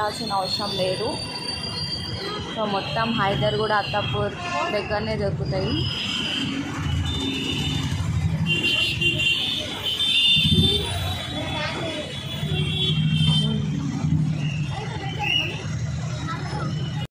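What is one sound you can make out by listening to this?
An engine rumbles steadily as a vehicle drives through busy traffic.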